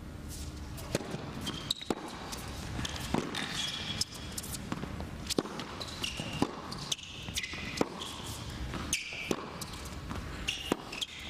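Tennis rackets strike a ball back and forth with sharp pops.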